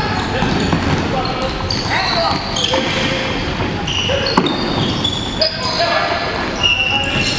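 A ball thuds off a foot.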